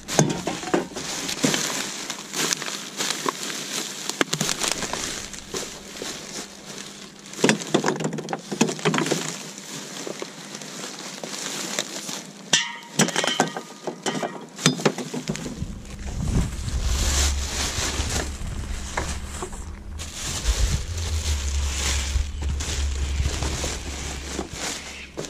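Plastic bags rustle and crinkle as gloved hands dig through them.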